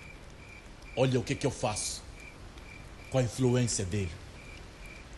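A man speaks in a low, calm voice close by.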